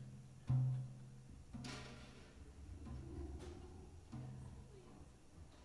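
Drums strike a few loud hits.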